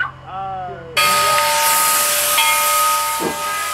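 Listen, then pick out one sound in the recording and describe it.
A steam locomotive hisses loudly, venting steam.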